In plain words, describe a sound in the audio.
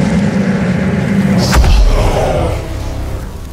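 A huge creature roars loudly.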